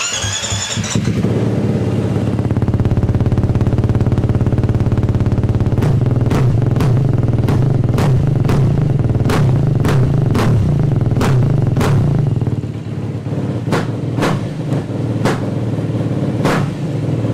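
A motorcycle engine idles with a steady, fast chugging rumble.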